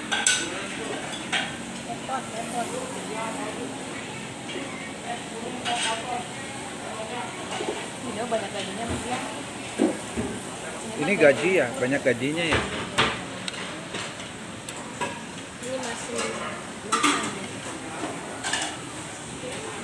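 Chopsticks clink against a pan.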